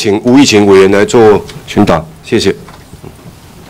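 A man speaks into a microphone in a formal tone.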